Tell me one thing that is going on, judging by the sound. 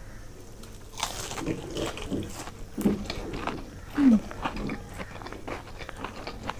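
A young woman chews food wetly and smacks her lips.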